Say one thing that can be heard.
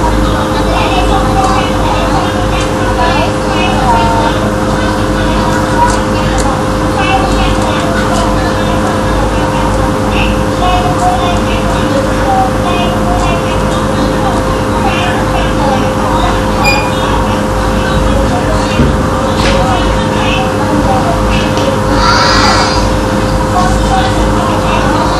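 A group of children sing together.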